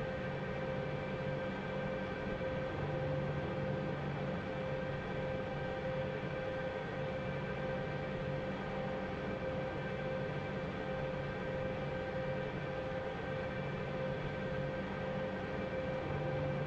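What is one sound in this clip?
A helicopter engine whines and hums steadily at idle.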